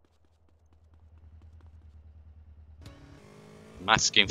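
A motorcycle engine idles and then revs up.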